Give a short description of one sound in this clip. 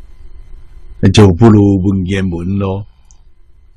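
An elderly man speaks calmly into a close microphone.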